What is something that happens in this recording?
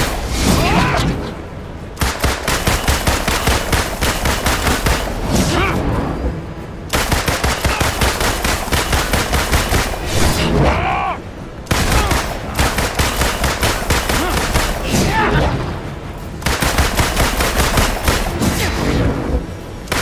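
Bodies thud and scrape as fighters tumble.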